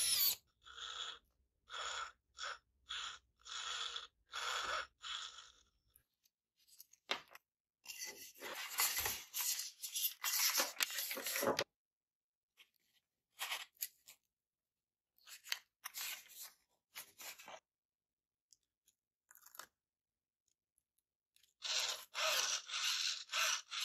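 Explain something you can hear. A small servo motor whirs in short bursts.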